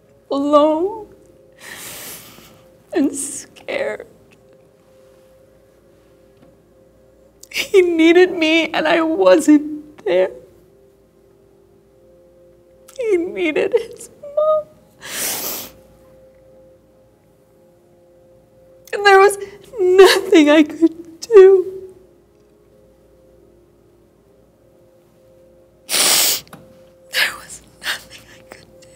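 A middle-aged woman speaks with emotion, close by.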